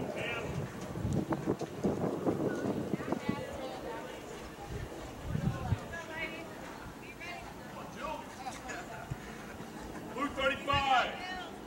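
Young women cheer and call out at a distance outdoors.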